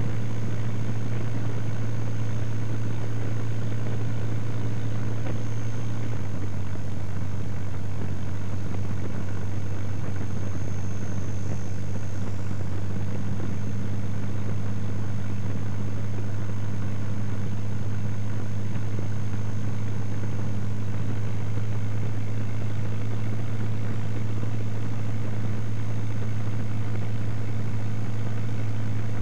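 A light plane's engine drones steadily and loudly close by.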